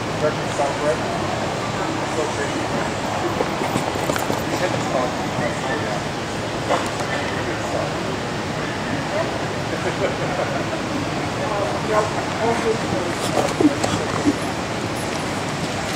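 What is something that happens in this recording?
A horse trots with soft hoofbeats on dirt in a large echoing hall.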